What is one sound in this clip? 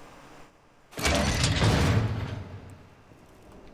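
A heavy metal barred door rattles and clanks open.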